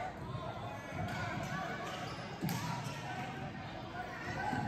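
A basketball thumps as it bounces on the floor.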